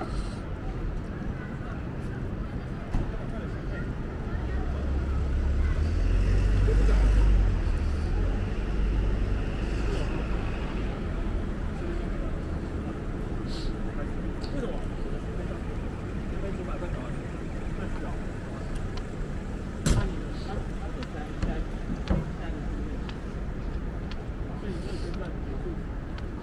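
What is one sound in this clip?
Steady city traffic hums in the background outdoors.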